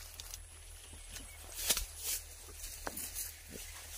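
Dry leaves of tall plants rustle close by as someone brushes through them.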